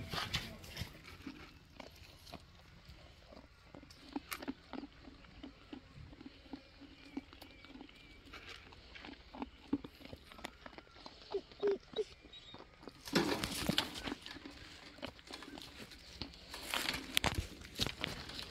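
A lamb crunches and munches on dry feed pellets close by.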